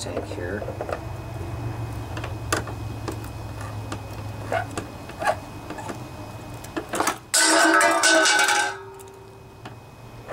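A wrench clicks and scrapes against metal engine parts.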